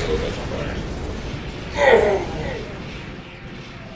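A blast explodes loudly nearby.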